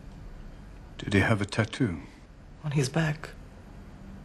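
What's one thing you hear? An older man speaks quietly and gravely.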